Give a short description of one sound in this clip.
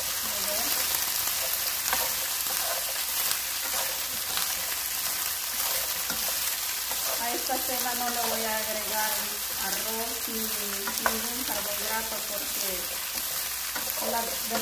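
A spatula scrapes and taps against a pan as vegetables are stirred.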